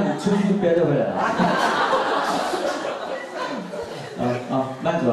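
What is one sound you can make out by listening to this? A man speaks with animation into a microphone, heard through loudspeakers in a room with some echo.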